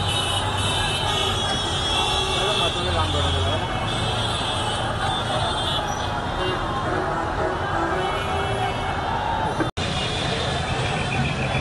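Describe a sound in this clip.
A large crowd chants and shouts outdoors, heard from a distance.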